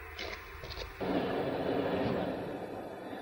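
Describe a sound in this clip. A train rumbles along steadily.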